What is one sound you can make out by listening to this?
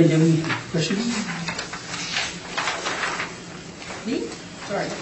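Paper rustles on a table.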